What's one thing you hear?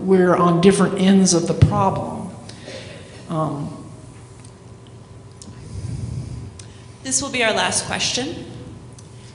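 An older woman speaks calmly through a microphone in a large echoing hall.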